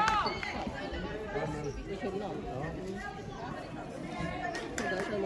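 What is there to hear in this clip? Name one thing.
Young women call out and chatter in a large echoing hall.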